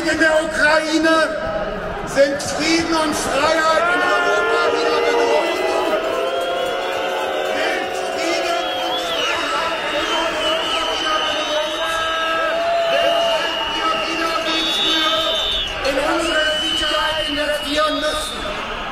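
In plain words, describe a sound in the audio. A large crowd sings loudly together outdoors.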